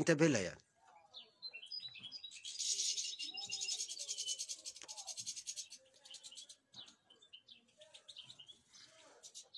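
Small birds chirp and twitter close by.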